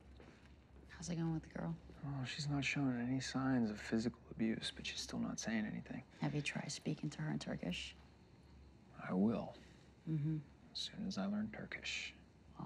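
A man speaks quietly and gently, close by.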